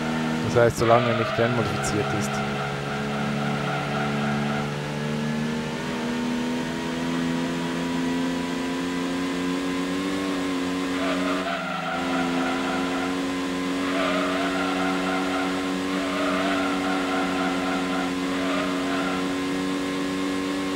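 A racing car engine hums steadily at high revs.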